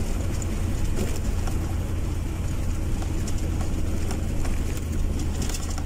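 Wind buffets loudly in a steady low rumble.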